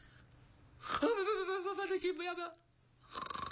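A young woman laughs loudly and shrilly close by.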